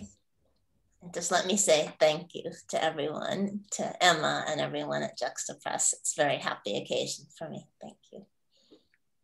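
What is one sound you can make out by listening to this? An older woman speaks warmly through an online call.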